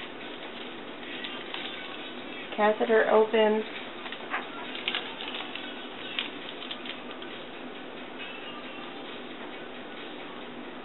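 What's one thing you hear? Plastic wrappers crinkle and rustle up close.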